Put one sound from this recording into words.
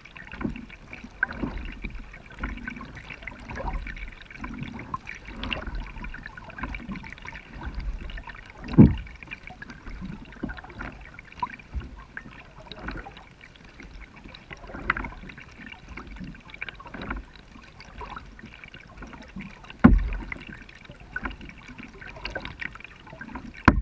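Water laps softly against a plastic kayak hull gliding on a calm river.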